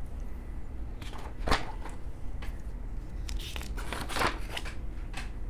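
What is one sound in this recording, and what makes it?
A sheet of paper rustles as a page is turned.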